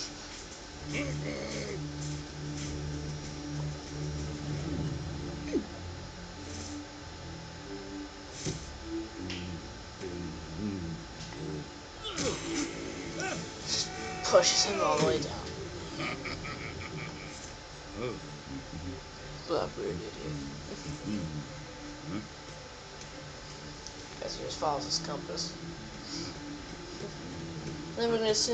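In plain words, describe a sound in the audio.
Music plays from a television.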